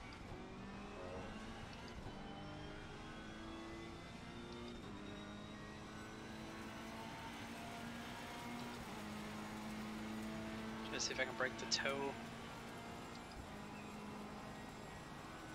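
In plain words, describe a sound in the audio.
A racing car engine hums steadily and shifts up through the gears.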